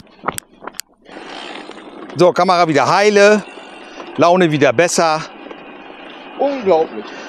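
Bicycle tyres roll along a road.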